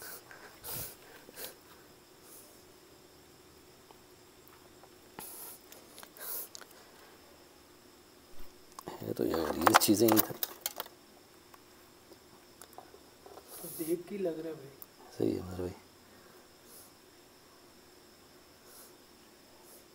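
Objects rattle and scrape as a man rummages through a metal box.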